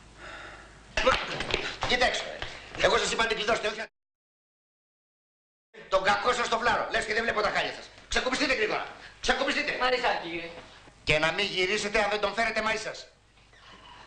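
A middle-aged man speaks loudly and with animation, close by.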